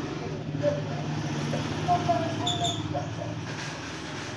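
A little girl calls out in a high voice nearby.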